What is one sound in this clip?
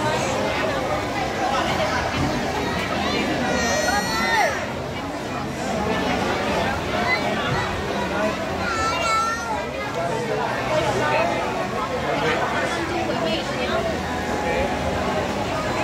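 A dense crowd chatters loudly all around.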